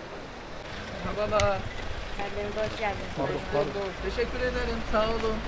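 A woman speaks nearby.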